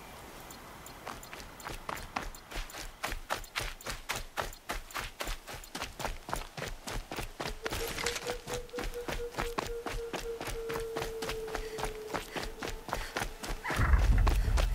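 Footsteps rustle quickly through grass and over rocky ground.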